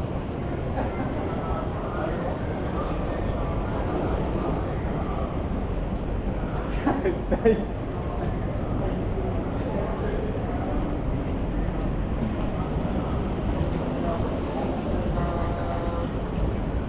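Footsteps tap on paving outdoors.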